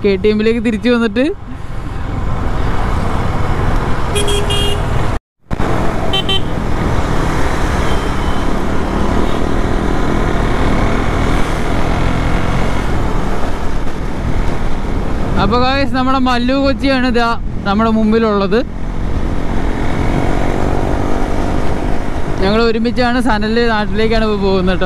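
A motorcycle engine revs up and down through the gears.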